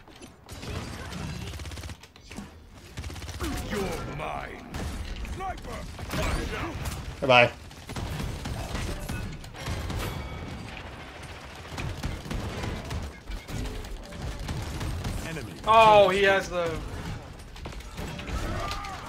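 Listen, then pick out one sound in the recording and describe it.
Rapid gunfire from a video game crackles in bursts.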